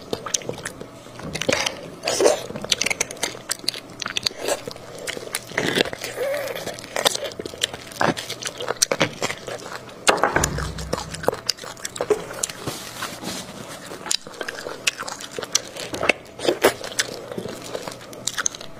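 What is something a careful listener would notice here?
A metal spoon scrapes and clicks against the food.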